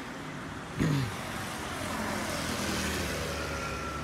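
A motorcycle rides by.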